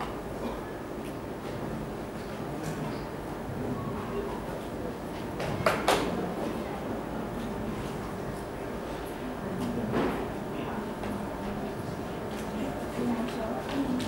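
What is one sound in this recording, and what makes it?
A marker scratches and squeaks across paper.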